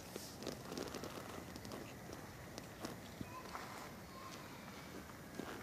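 Wind blows outdoors and rumbles against the microphone.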